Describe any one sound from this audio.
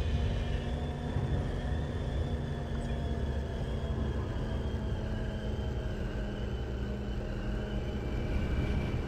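A hovering speeder hums with a low steady engine drone.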